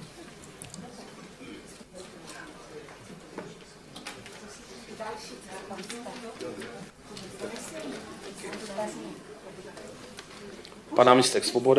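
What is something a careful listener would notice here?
Several people talk quietly in a large room.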